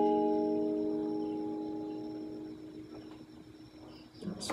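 An acoustic guitar chord rings out and slowly fades.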